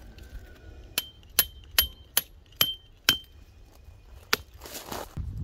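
A metal tent peg clinks sharply several times.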